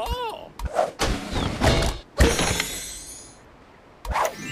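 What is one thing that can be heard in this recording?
A treasure chest bursts open with a bright, magical chime.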